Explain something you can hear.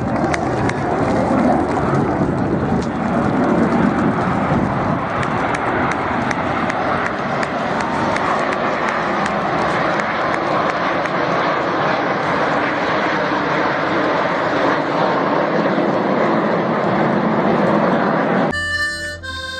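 Jet planes roar overhead in a loud, steady rush.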